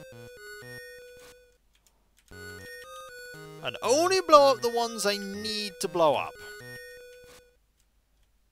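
Simple electronic game music beeps in short tones.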